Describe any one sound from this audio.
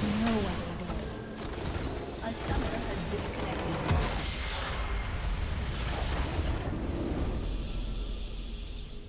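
Video game spells crackle and whoosh in a busy battle.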